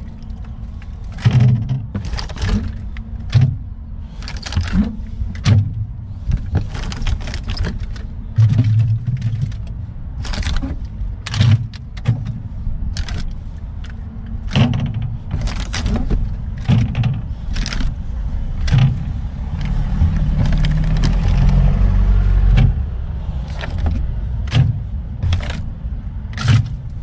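Plastic water bottles knock and clatter onto the wire shelves of a drinks fridge.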